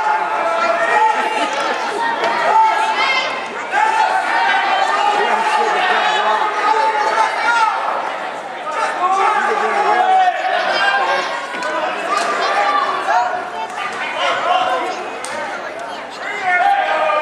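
A crowd shouts and cheers loudly in an echoing gym.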